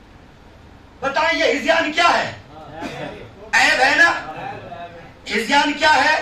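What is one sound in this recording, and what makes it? A man preaches passionately through a microphone.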